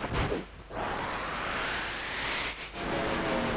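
An energy beam whooshes and crackles through the air.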